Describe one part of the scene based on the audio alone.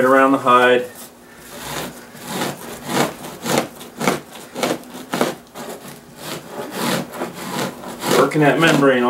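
A blade scrapes rhythmically over a hide.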